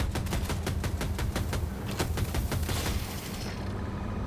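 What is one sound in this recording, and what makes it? A cannon fires in rapid bursts.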